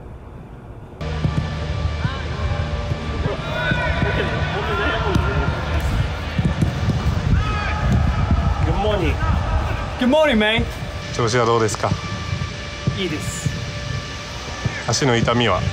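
Young men chat and laugh outdoors.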